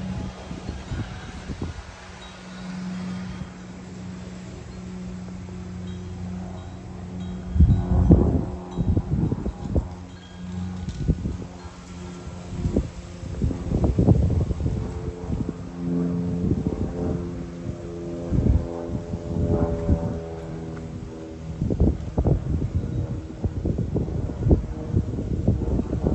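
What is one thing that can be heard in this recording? A small propeller plane drones steadily overhead.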